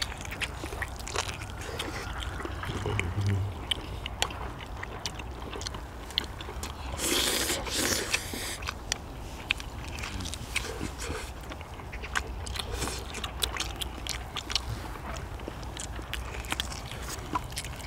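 People chew and slurp food noisily close by.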